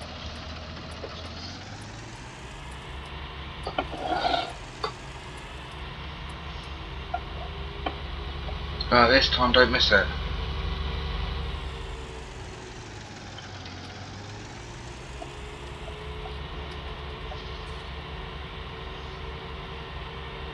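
A tractor engine hums steadily, rising and falling in pitch.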